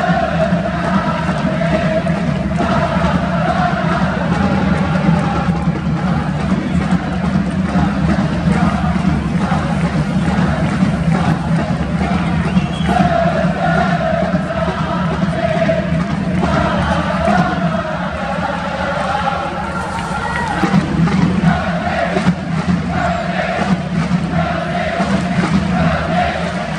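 A large stadium crowd chants and sings in unison, echoing widely.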